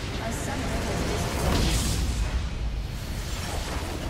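A large structure explodes with a deep rumble.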